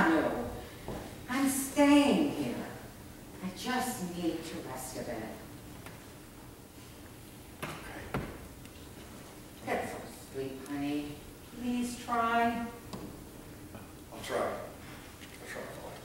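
A woman speaks in a slightly echoing room.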